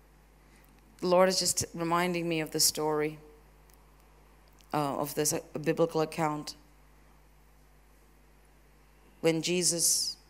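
A woman speaks with feeling into a microphone, heard through loudspeakers in a large room.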